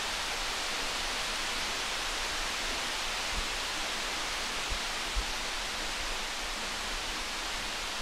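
Footsteps pad softly across a floor.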